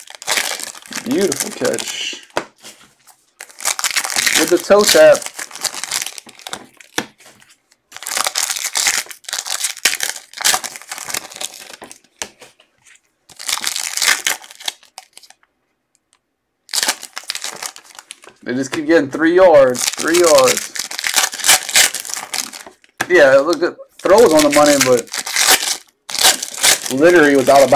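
Foil wrappers crinkle and tear close by.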